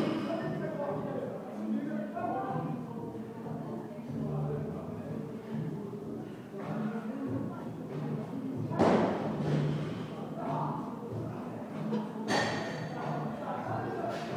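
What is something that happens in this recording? Men and women talk in the distance in a large echoing hall.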